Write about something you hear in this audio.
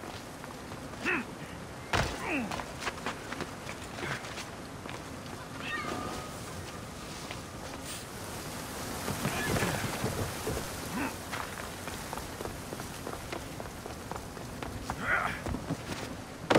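Footsteps scuff and patter on stone and wood.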